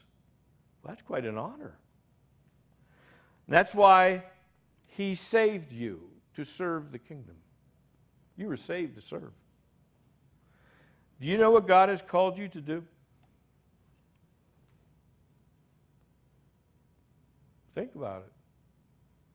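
A middle-aged man speaks with animation into a microphone, with long pauses.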